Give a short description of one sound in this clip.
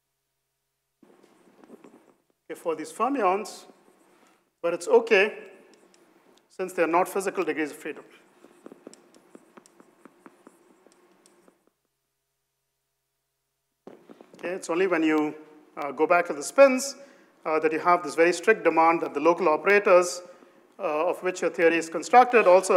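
A man lectures in a lively voice through a microphone.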